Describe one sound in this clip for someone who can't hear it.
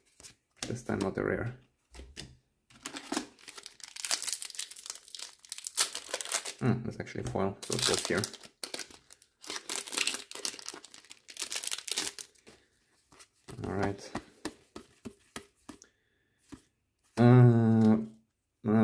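Playing cards rustle as hands sort through them.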